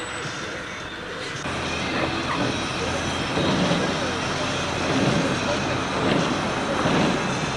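A car drives along a road with steady road and engine noise.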